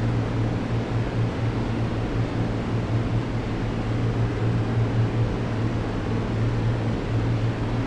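An aircraft engine drones steadily, heard from inside the cockpit.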